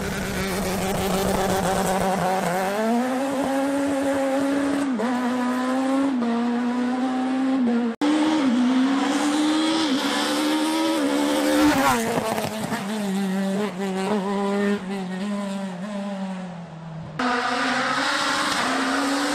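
A rally car engine revs hard and shifts gears as the car speeds past.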